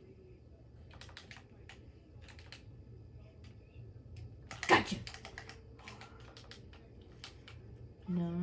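Video game sound effects clatter and click in quick bursts.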